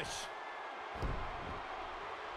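A body slams heavily onto a ring mat.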